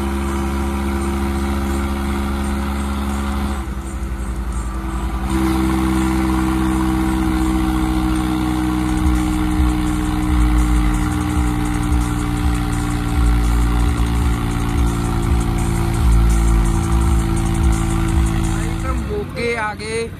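A tractor engine drones steadily while driving.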